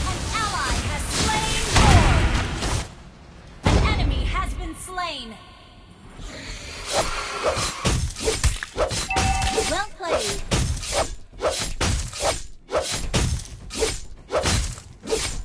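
Game battle effects whoosh and clash in quick bursts.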